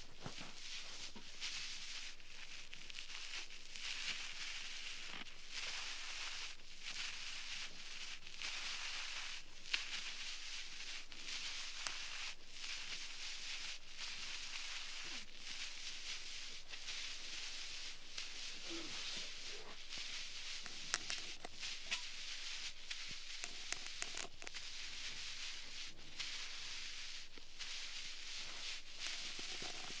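A thin tool scratches and rustles softly, very close up, inside an ear.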